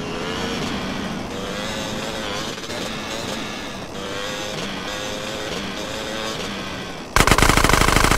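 A motorbike engine revs and hums steadily.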